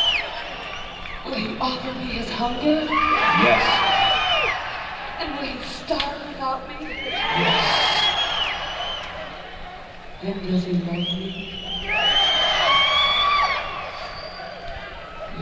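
A man sings loudly into a microphone, heard through loudspeakers.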